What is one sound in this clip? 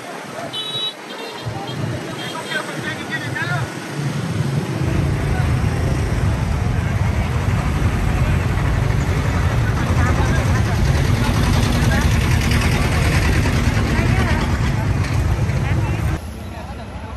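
A large crowd murmurs and chatters nearby outdoors.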